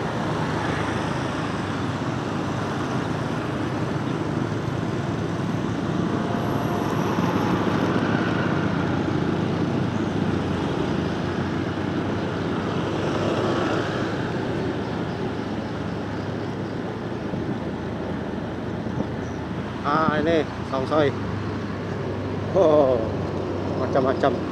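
A small motorcycle engine runs while riding along a street.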